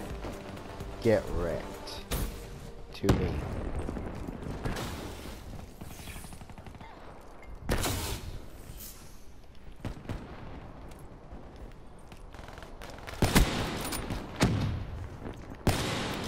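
Sniper rifle shots crack loudly, each followed by a rolling echo.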